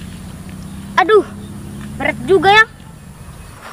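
A young boy speaks up loudly nearby.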